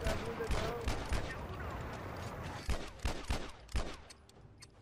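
Gunfire bursts loudly in rapid shots.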